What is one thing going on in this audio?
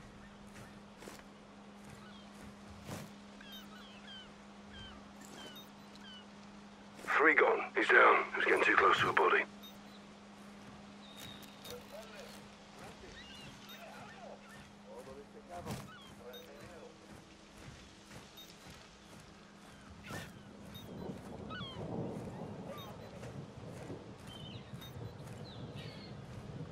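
Footsteps scuff and tap on a roof.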